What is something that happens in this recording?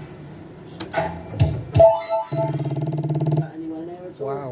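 A slot machine plays loud electronic beeps and jingles.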